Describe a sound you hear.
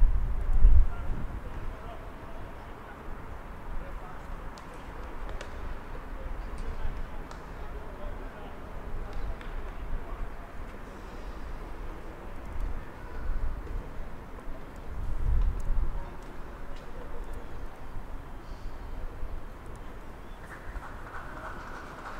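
Wind blows and rumbles across an open outdoor field.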